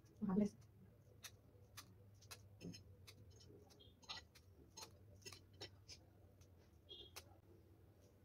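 Cutlery clicks and scrapes against a plate.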